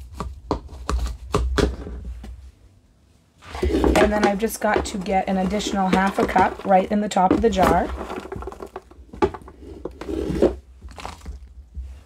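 A metal cup crunches and grinds dry flakes in a plastic bowl.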